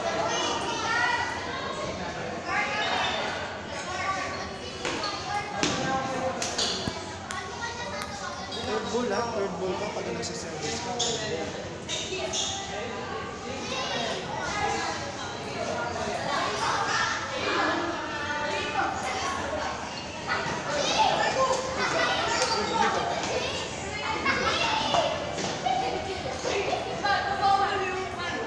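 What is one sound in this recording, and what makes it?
Young men talk and call out nearby in a room with some echo.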